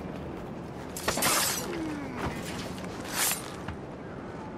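A blade slashes with sharp, sudden swishes.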